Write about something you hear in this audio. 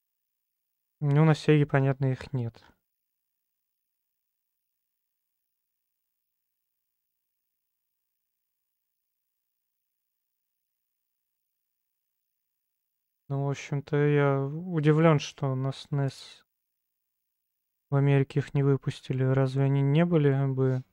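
A man speaks calmly and close to a microphone, in short bursts with long silences between.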